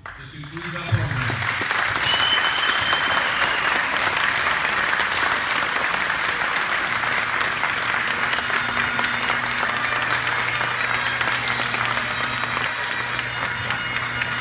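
A crowd claps and cheers loudly in an echoing hall.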